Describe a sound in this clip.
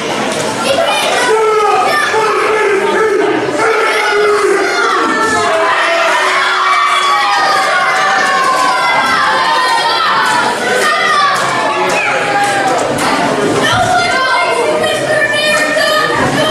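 A crowd cheers and chants loudly in an echoing hall.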